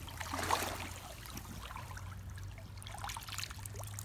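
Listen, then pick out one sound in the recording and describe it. Water splashes as a hand scoops it up.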